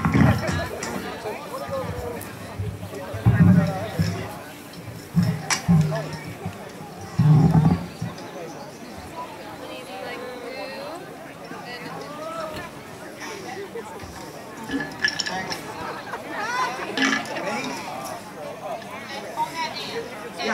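Stringed instruments are plucked and tuned on an outdoor stage.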